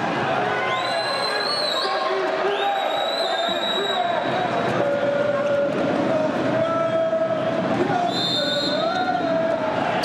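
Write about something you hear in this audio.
A referee's whistle blows several sharp blasts.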